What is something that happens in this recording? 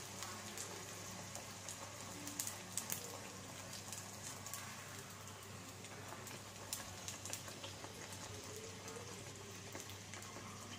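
A metal strainer scrapes and taps against the pan.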